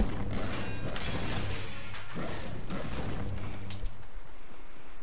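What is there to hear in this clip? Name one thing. A blast bursts with a sharp crack.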